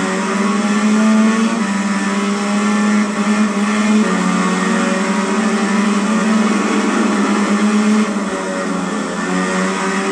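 A motorcycle engine roars at high revs, shifting pitch as it changes gear.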